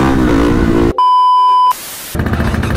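A steady high beep sounds.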